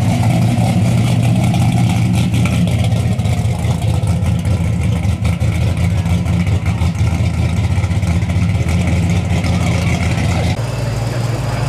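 A pickup truck's engine rumbles deeply as the truck pulls away.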